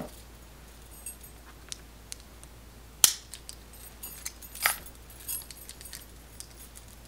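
Plastic hair clips click and rattle.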